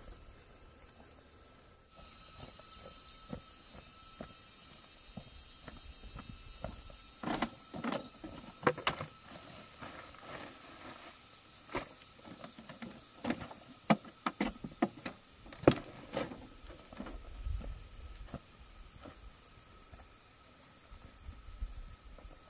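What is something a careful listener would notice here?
Footsteps crunch through dry grass and stalks.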